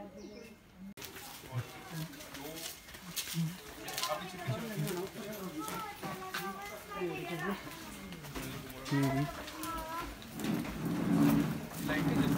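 Men and women talk and chatter nearby in a busy street.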